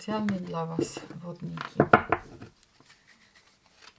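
Playing cards rustle and flick as a deck is gathered and shuffled.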